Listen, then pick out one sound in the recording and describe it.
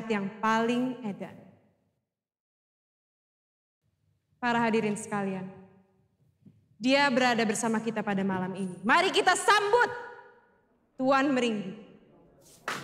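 A young woman announces loudly through a microphone in an echoing hall.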